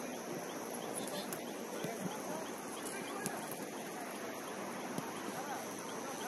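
Young women shout to each other from across an open pitch.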